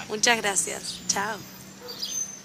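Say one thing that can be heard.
A young woman speaks cheerfully close by.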